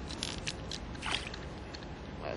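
Something splashes in the water close by.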